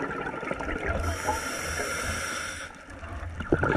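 A scuba diver breathes in through a regulator with a hiss.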